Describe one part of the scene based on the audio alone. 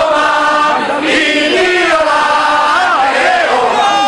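A woman shouts a slogan nearby.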